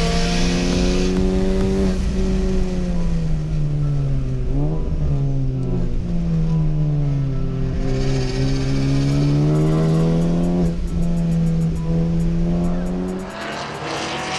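A race car engine roars loudly, its pitch rising and falling through gear changes.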